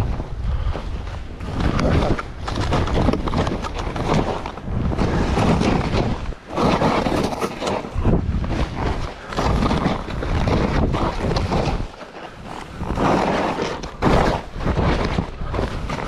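Skis hiss and swoosh through deep powder snow.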